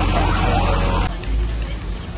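A large fire roars and crackles nearby.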